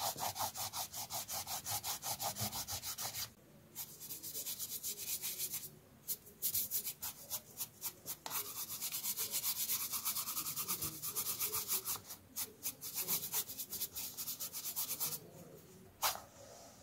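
A brush sweeps quickly back and forth across paper with rapid brushing strokes.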